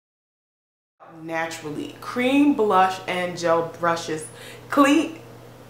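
A young woman talks close to a microphone with animation.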